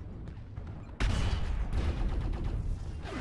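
Laser weapons on a heavy mech fire in bursts.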